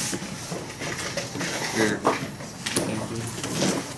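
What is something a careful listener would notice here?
Playing cards are laid down softly on a table.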